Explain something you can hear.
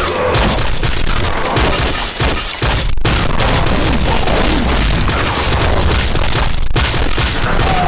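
Claws slash and strike with fleshy thuds.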